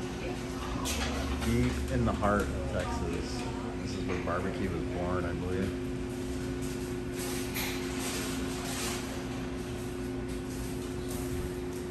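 Diners chatter quietly in the background.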